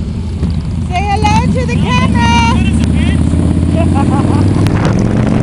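A motorcycle engine revs up nearby.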